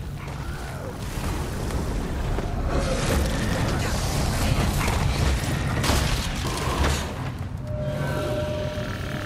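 Magic blasts and weapon hits crash in a noisy fight.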